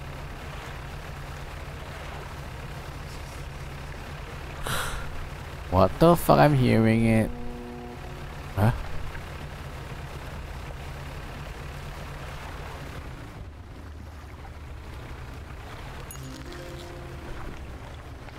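A boat engine hums low and steadily.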